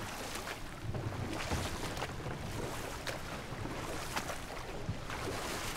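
An oar dips and splashes in the water.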